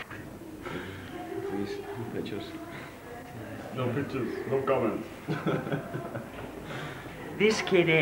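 A man talks and chuckles close by.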